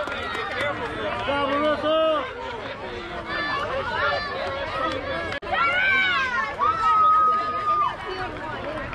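Young girls shout and cheer excitedly nearby, outdoors.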